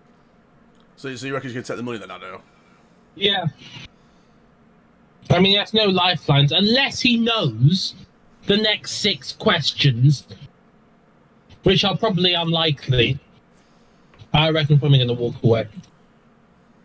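A man talks casually into a close microphone.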